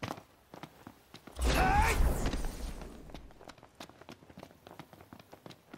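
Quick footsteps run over grass and rock.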